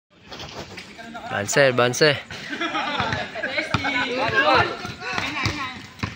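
Sneakers patter and scuff on a hard court as players run.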